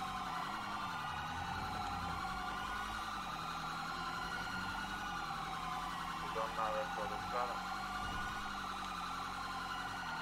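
A police siren wails close by.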